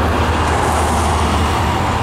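A car passes close by.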